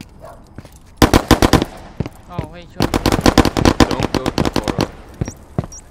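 Rapid gunshots fire in loud bursts close by.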